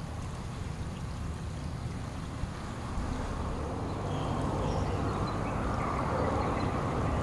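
Shallow river water ripples around concrete blocks.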